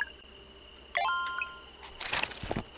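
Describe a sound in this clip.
A bright chime rings out as progress is saved.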